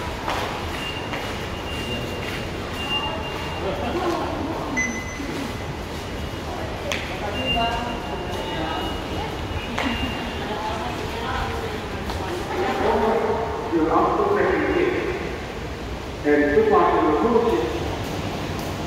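Adults talk quietly nearby in an echoing hall.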